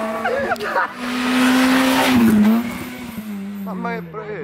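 A second rally car engine revs loudly as the car approaches.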